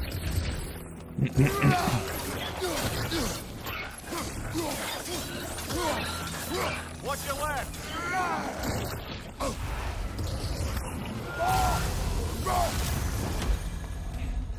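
Weapons clash and thud in a fight.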